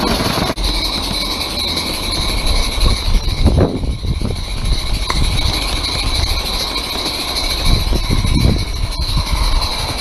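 A small steam engine chuffs and puffs out steam.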